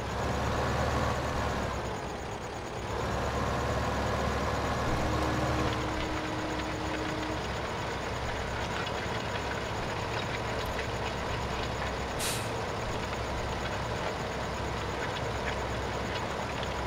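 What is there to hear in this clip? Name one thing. A tractor engine drones under load.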